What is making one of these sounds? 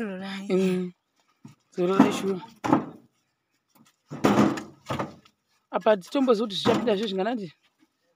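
Bricks knock against each other as they are caught and stacked.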